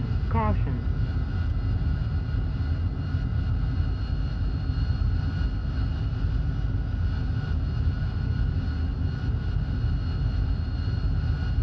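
A jet engine rumbles and whines steadily.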